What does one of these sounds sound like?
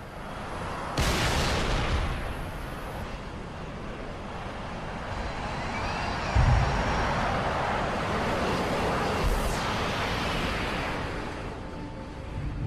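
Aircraft engines roar and whoosh as they fly low overhead.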